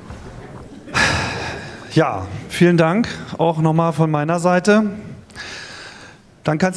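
A middle-aged man speaks with animation through a microphone and loudspeakers in a large hall.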